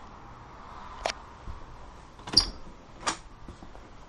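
A door clicks and swings open.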